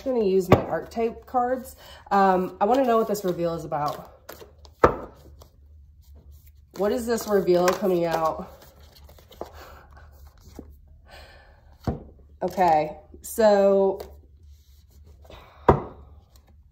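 Cardboard cards tap and rustle in a woman's hands.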